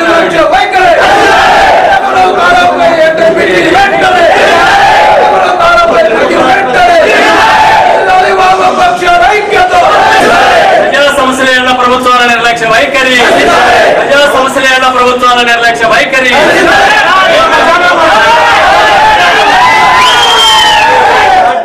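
A crowd of men shout slogans loudly together.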